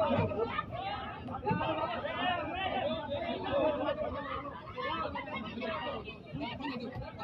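A crowd of men shouts and argues excitedly outdoors close by.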